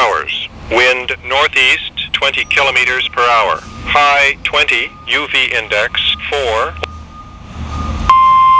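A man's voice reads out through a small radio speaker.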